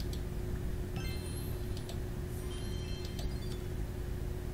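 A sparkling reward chime rings out.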